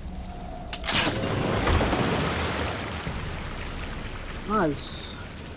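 Water gushes out and splashes down steadily.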